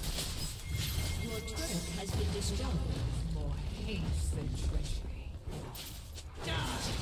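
A turret crumbles with a heavy rumble.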